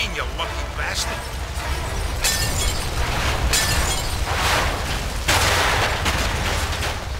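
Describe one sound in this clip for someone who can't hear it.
Flames crackle and roar nearby.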